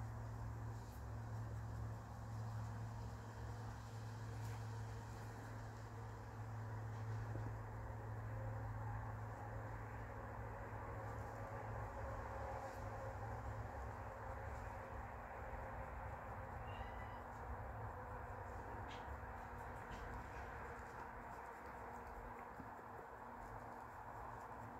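A pencil scratches softly against a small hard surface.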